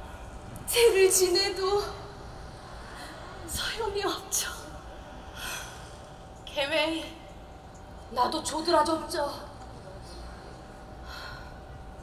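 A young woman speaks with feeling, heard from a distance.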